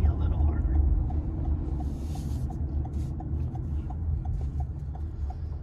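A turn signal ticks steadily inside a car.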